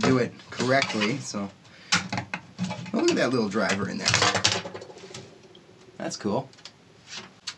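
Hard plastic knocks and clatters as a small speaker is handled.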